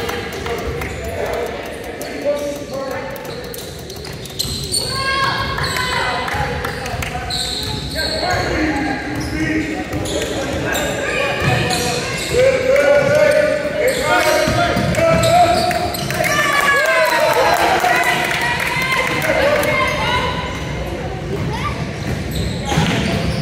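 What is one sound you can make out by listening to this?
Sneakers squeak on a hardwood court in a large echoing gym.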